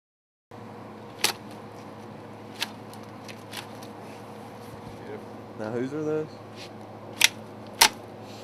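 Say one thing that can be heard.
Loppers snap through bone with sharp cracks.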